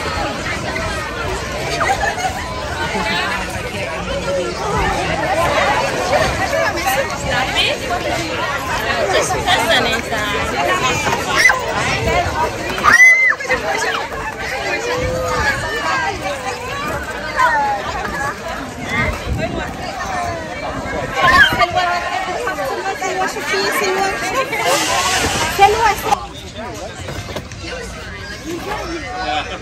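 A crowd of children and adults chatters and calls out nearby outdoors.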